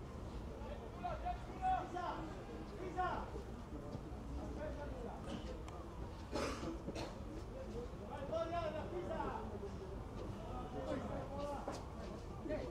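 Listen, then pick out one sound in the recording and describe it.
Young men shout to each other across an open field outdoors.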